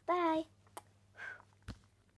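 A young girl blows a smacking kiss.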